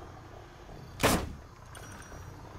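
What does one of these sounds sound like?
A grenade explodes with a loud, sharp blast.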